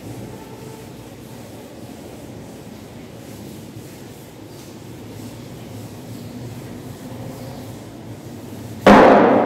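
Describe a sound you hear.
A cloth duster rubs softly across a chalkboard.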